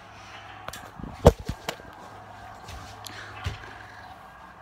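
Footsteps thud on a carpeted floor.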